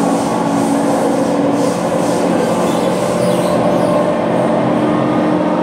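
A train car rumbles and hums steadily as it moves along the track.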